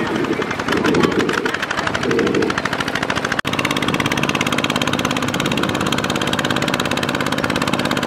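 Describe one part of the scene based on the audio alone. A small tiller engine chugs rapidly and steadily up close.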